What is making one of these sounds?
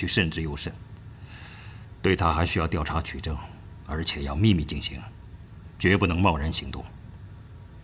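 A man speaks calmly and firmly, close by.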